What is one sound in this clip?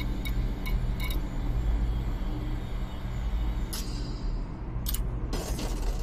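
Short electronic menu beeps click several times.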